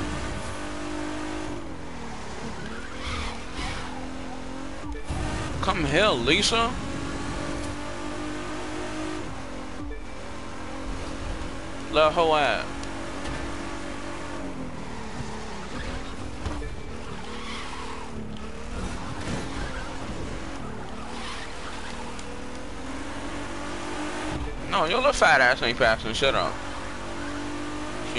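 A sports car engine roars steadily, its pitch rising and falling with the gears.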